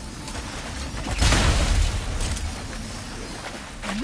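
A crate bursts open with a loud bang.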